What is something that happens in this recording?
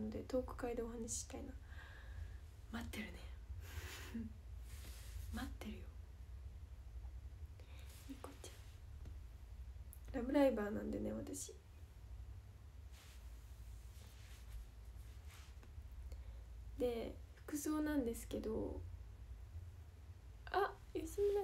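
A young woman speaks casually, close to the microphone, with pauses.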